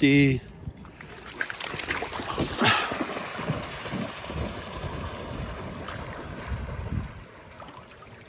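A dog splashes through shallow water and swims.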